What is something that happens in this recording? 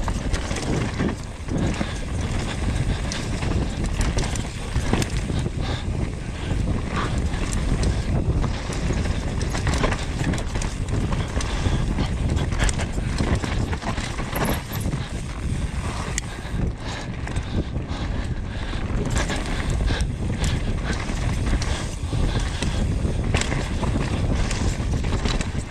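Bike tyres rumble and crunch over a dirt trail at speed.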